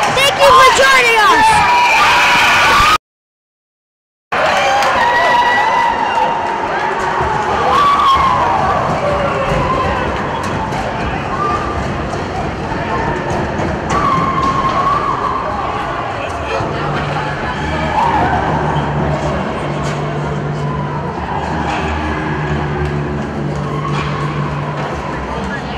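A crowd cheers and shouts in a large echoing rink.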